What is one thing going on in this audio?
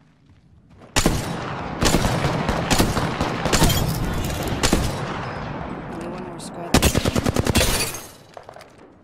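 Rapid gunshots fire in bursts and echo.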